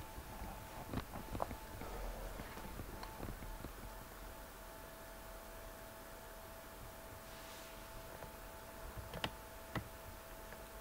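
A soft click sounds as a chess piece is moved in a computer game.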